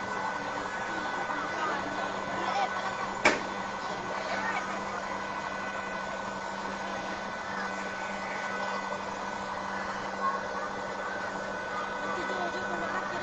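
A large crowd of people chatters and shouts in the distance.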